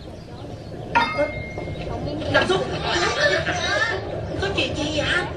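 Children shout with excitement close by.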